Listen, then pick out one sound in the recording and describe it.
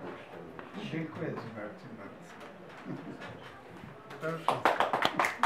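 An elderly man talks and laughs cheerfully nearby.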